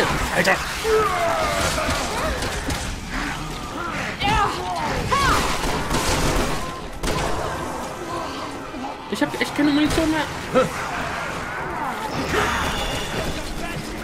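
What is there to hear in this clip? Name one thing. A monster growls and shrieks.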